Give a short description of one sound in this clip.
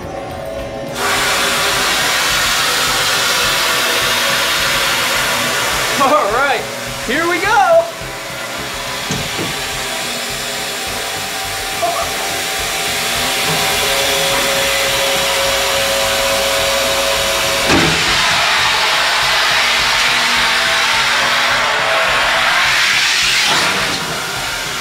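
A machine whirs and grinds loudly and steadily.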